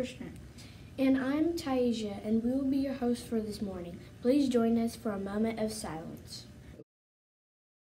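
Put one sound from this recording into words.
A young girl speaks calmly into a nearby microphone.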